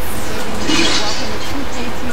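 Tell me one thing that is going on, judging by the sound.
A young woman talks with animation.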